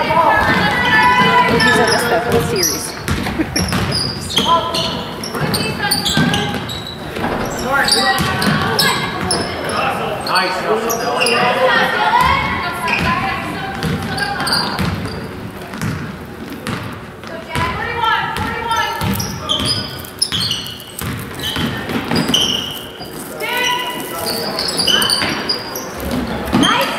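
Spectators talk and cheer nearby in an echoing gym.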